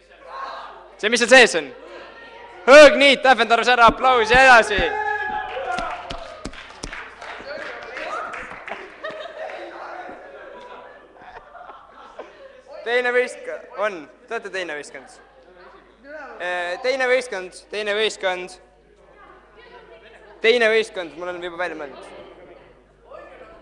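A young man sings loudly into a microphone, heard through a loudspeaker in a reverberant room.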